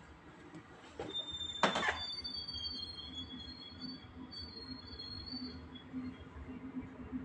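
A train engine rumbles and hums as the train pulls away.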